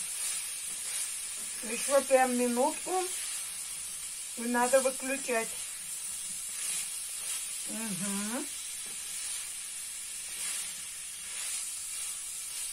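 A spatula scrapes and clicks against a frying pan.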